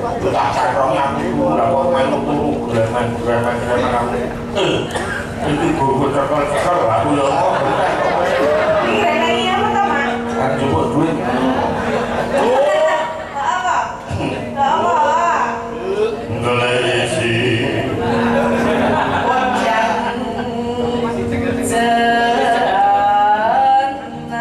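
A woman sings through a microphone over loudspeakers.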